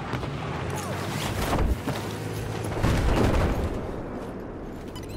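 Wind rushes past during a fall.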